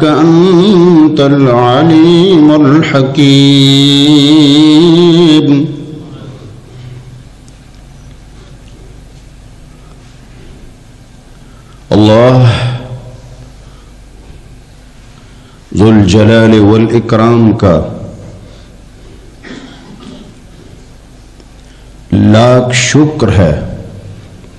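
A man chants in a long, wavering voice through a loudspeaker, in bursts with pauses between.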